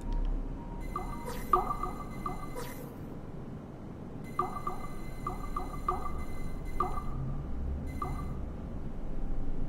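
Electronic chimes and tones ring out from a game.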